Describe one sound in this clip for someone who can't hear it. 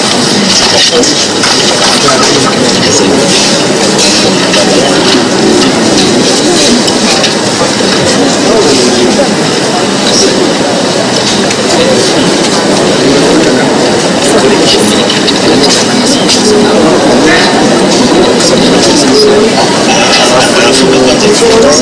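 A crowd of men and women chatters and murmurs in a large hall.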